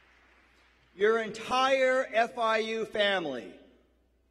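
A middle-aged man speaks calmly through a microphone in a large hall.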